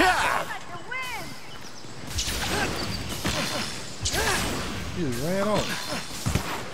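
A large creature screeches.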